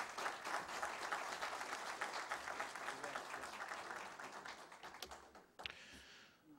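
An audience applauds in a large room.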